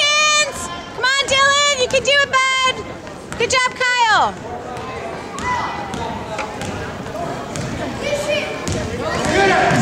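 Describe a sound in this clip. A ball bounces repeatedly on a wooden floor in an echoing hall.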